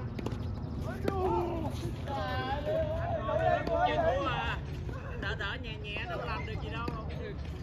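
Men talk across the court.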